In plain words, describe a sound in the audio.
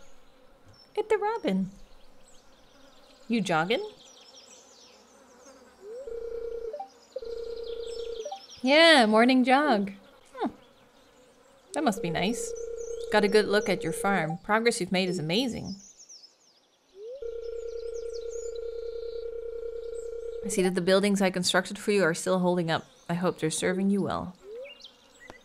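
A young woman talks casually and with animation into a close microphone.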